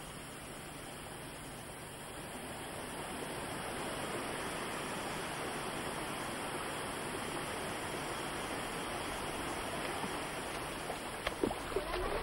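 A waterfall rushes and roars steadily.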